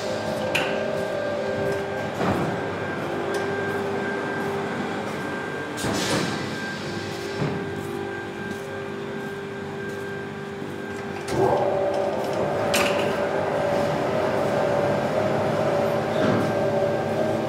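Machines hum steadily.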